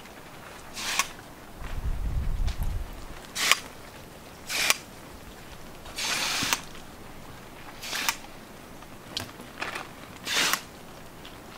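Water trickles from a watering can into soil.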